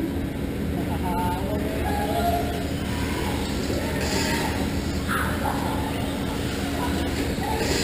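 A radio-controlled car's electric motor whines as it races around an indoor dirt track.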